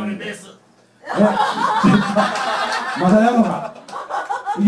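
Several people chatter and laugh close by.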